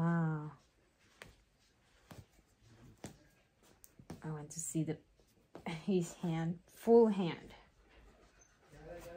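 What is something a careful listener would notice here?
Soft fabric rustles as a small garment is pulled on.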